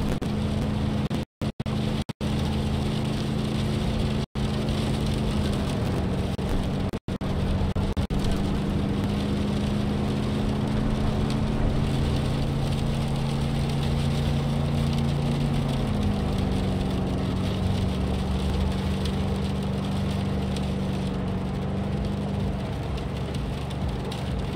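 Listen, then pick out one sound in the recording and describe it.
A car engine hums steadily as it drives along, changing pitch as it shifts gears.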